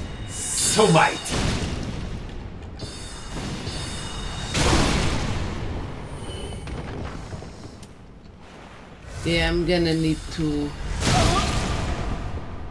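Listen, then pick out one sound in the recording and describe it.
Magic spells whoosh and burst loudly.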